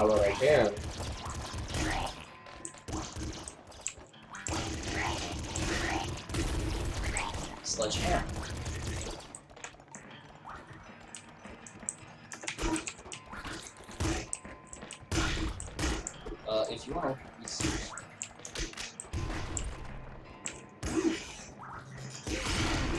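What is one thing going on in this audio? Video game gunshots fire in rapid bursts.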